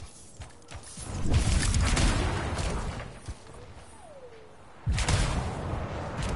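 Jet thrusters roar and whoosh in bursts.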